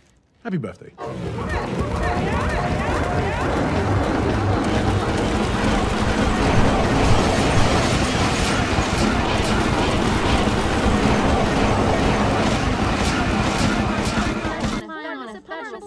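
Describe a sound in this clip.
A crowd of men cheers and whoops loudly.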